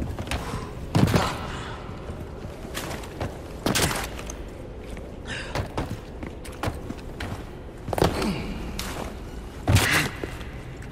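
Heavy thuds sound as a man drops down onto rocky ground.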